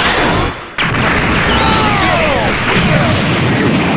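Energy blasts whoosh and roar.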